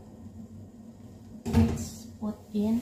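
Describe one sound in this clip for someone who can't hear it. A utensil clinks against a frying pan.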